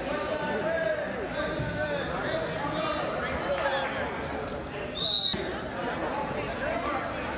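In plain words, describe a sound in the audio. A crowd of men, women and children chatters and calls out in a large echoing hall.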